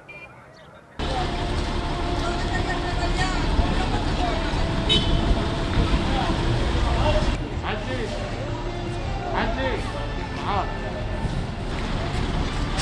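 Several voices chatter nearby in a busy street.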